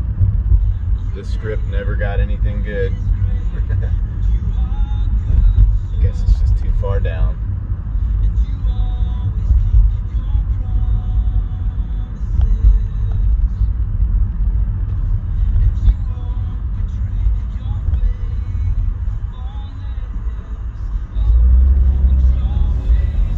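A car engine rumbles steadily as it drives along a road.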